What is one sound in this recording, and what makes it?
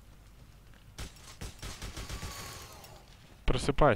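A heavy gun fires in a rapid burst.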